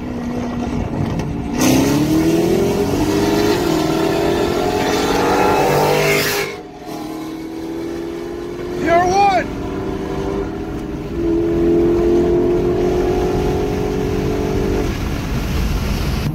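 Tyres hum on the road at speed.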